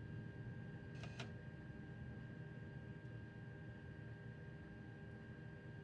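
A train's electric motors hum steadily.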